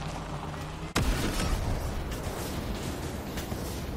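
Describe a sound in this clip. A grenade explodes with a loud, deep boom.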